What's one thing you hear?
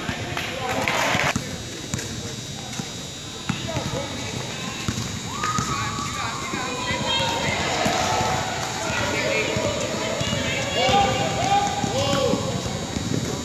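A crowd of young players and spectators chatters in a large echoing hall.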